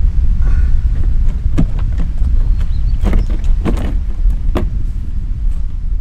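A folding board knocks and clatters as it is handled.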